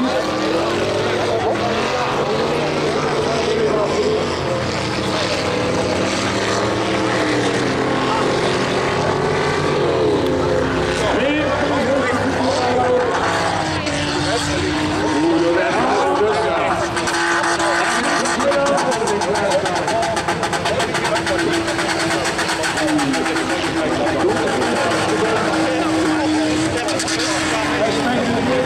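Diesel engines of racing combine harvesters roar and rev.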